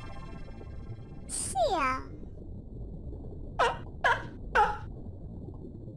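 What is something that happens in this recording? A cartoon seal toots a small horn.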